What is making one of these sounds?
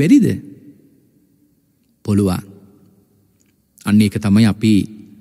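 A man speaks slowly and calmly in short phrases.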